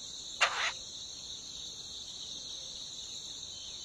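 Nestlings cheep and beg for food.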